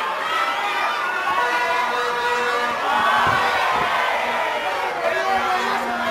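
A crowd cheers and shouts loudly all around.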